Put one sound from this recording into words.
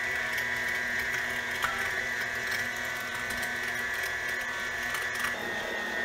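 Meat squelches as a plunger pushes it through a grinder.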